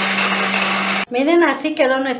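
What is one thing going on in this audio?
A blender whirs loudly, then stops.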